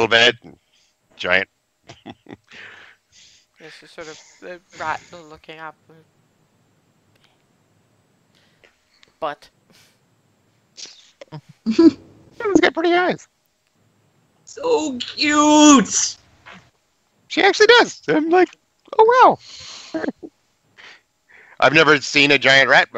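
Young men talk and joke with animation over an online call.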